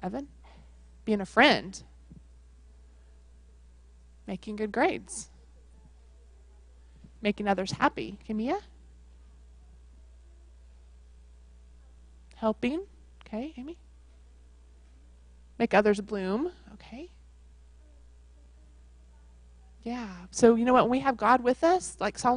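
A woman speaks into a microphone in short phrases, with pauses between them.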